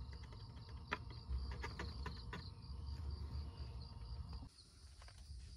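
A knife scrapes across bread.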